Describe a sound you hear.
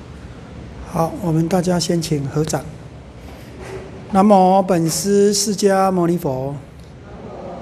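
A middle-aged man speaks calmly into a microphone in an echoing hall.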